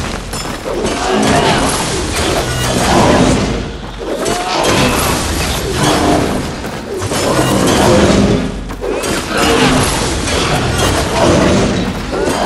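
Heavy blows thud against a monster.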